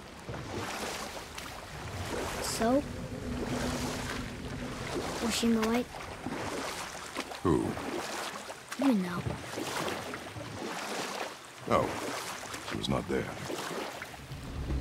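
Oars splash through water.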